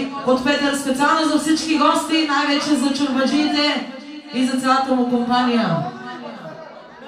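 A man speaks loudly through a microphone.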